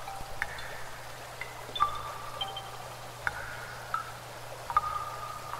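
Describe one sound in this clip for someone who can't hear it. A small stream trickles and plinks softly over stones.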